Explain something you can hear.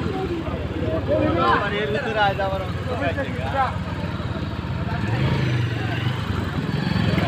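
A motorcycle engine idles and hums close by.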